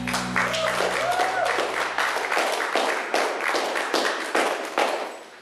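An electric guitar strums a steady rhythm.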